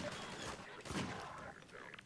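A revolver clicks as it is reloaded.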